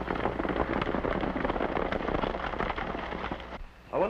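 Horses gallop with thudding hooves.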